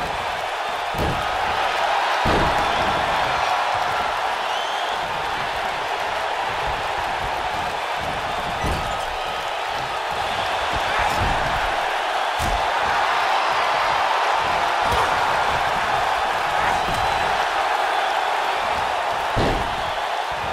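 Bodies slam heavily onto a wrestling ring's mat.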